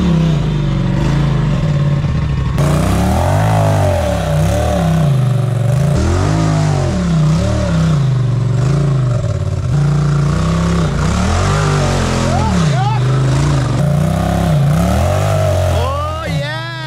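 An off-road vehicle's engine revs up and down as it climbs over rocks.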